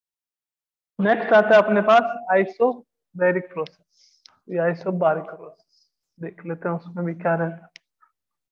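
A man speaks calmly nearby, as if teaching.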